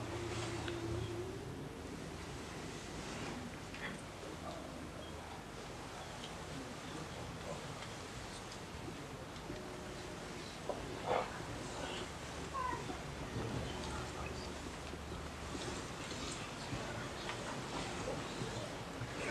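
A crowd of men murmurs quietly nearby.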